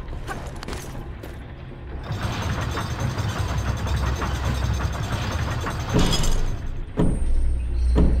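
Hands clank against a metal grate while climbing.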